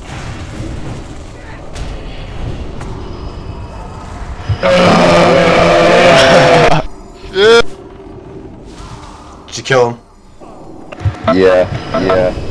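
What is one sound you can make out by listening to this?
Fiery spell effects whoosh and crackle.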